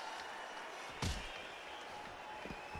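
A body thuds heavily onto a hard floor.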